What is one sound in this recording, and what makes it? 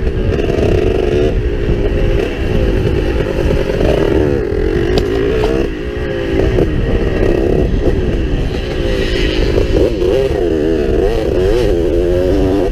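A motorcycle engine revs and roars up close, rising and falling in pitch.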